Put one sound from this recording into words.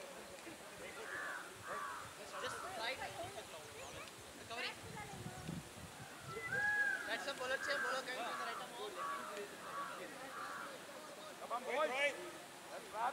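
Men call out and talk to each other across an open field, heard from a distance outdoors.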